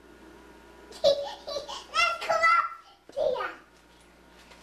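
A young boy talks close by, high-pitched and lively.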